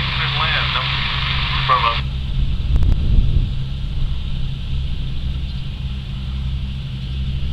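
A jet engine roars steadily as a plane comes in to land.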